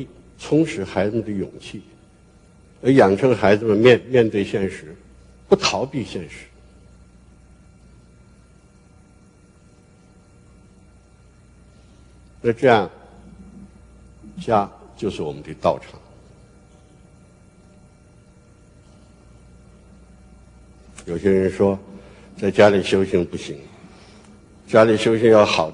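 An elderly man speaks calmly through a microphone, with long pauses, in a large hall.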